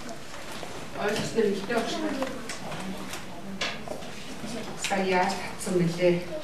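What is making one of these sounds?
A woman speaks clearly to a room, with a slight echo.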